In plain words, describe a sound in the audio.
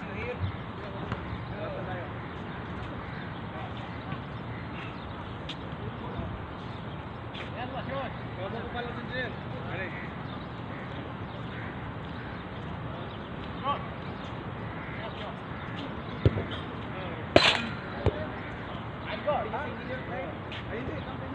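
Young men shout and call out to each other across an open court, far off.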